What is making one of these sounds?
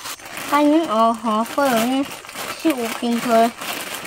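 A plastic packet crinkles in a boy's hands.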